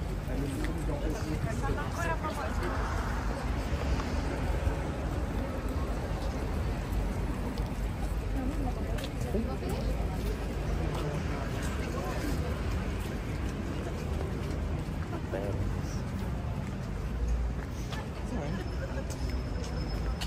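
Footsteps shuffle on paving.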